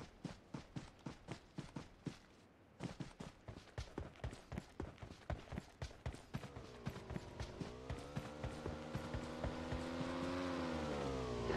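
Footsteps thud quickly through grass.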